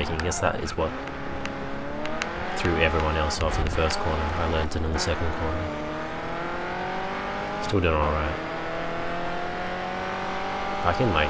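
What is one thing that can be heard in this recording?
A racing car engine roars and climbs in pitch, dropping briefly at each gear change.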